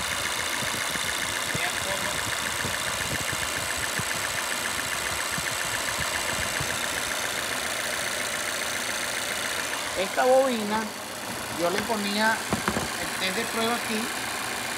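An engine idles with a fast, steady ticking.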